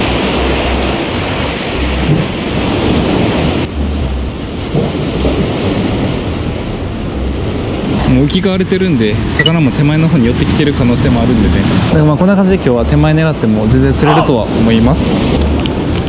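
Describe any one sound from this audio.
Sea waves wash and splash against the rocks.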